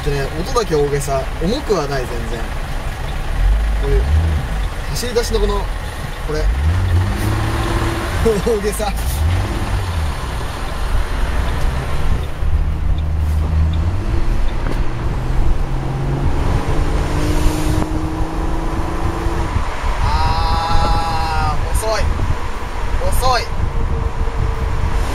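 Wind rushes past an open car.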